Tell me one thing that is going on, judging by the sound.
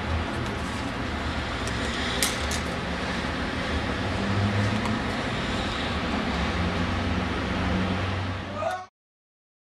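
Footsteps walk across a hard tiled floor.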